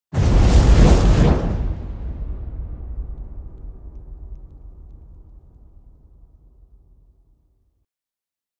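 A fireball bursts with a deep roar that slowly rumbles away.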